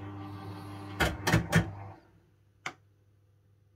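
A fruit machine beeps and clunks as the reels settle.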